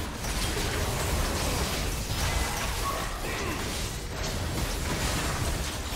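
Game spell effects crackle and boom as characters fight.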